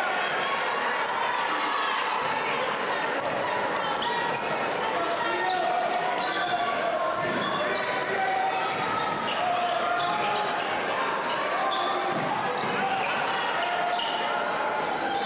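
A large crowd murmurs and chatters in a big echoing gym.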